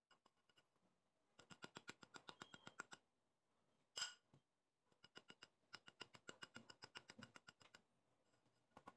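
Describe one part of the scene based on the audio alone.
A whisk clinks and scrapes against a bowl, stirring batter.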